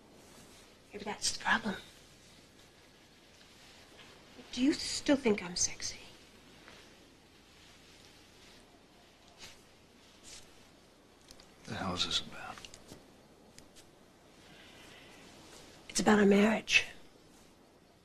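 A man speaks quietly, close by.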